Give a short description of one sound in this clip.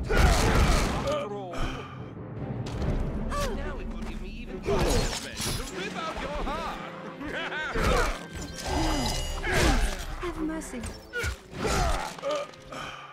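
Blades clash and thud in a close fight.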